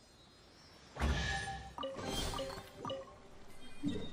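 A treasure chest opens with a bright, sparkling chime.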